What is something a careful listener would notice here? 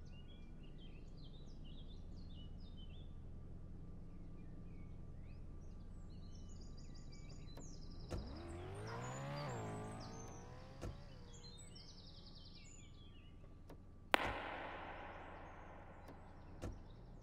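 A car engine hums at idle.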